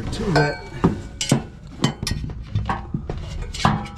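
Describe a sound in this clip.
A metal tool scrapes and taps against rusty metal.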